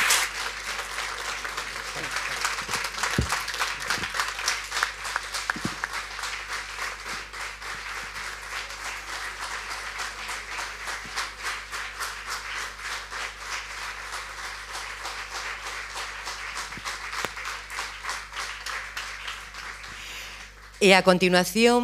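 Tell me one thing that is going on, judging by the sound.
An audience claps and applauds steadily.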